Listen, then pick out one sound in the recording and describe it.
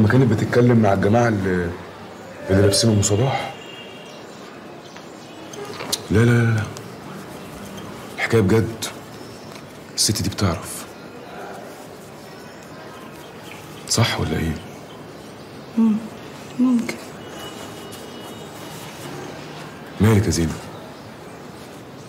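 A man speaks quietly and close by, in short phrases with pauses.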